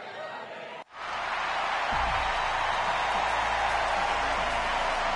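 Smoke jets hiss loudly in a large arena.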